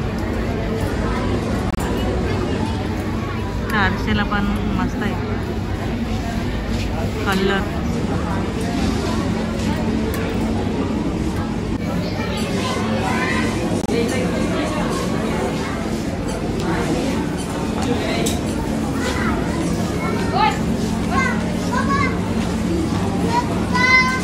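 A crowd murmurs and chatters in a large indoor space.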